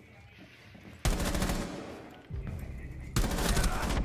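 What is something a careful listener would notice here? Rapid gunfire bursts ring out loudly.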